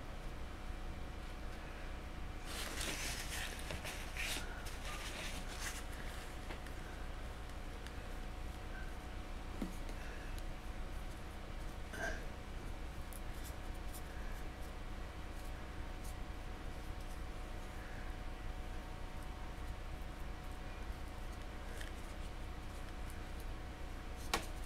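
A paintbrush dabs softly on a rough surface.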